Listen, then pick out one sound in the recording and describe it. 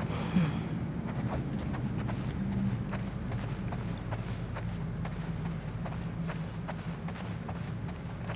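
Footsteps tread softly across a hard floor.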